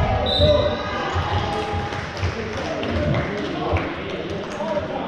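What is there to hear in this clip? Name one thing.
A basketball bounces with dull thumps on the floor.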